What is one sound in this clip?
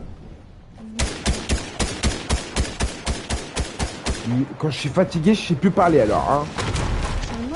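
Gunshots fire in a rapid, steady burst.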